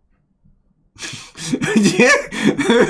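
A young man laughs loudly, close to a microphone.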